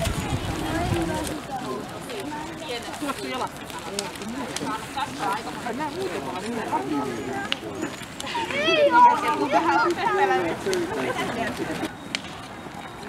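A crowd of people talk and call out nearby.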